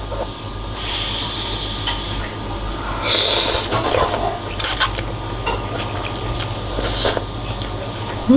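A woman slurps noodles loudly.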